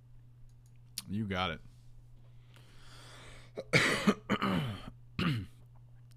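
A man speaks into a close microphone.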